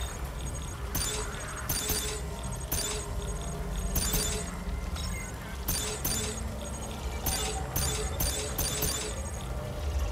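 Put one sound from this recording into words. Short electronic menu clicks tick sharply, one after another.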